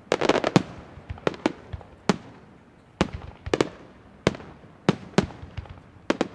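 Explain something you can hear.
Fireworks crackle faintly between the bangs.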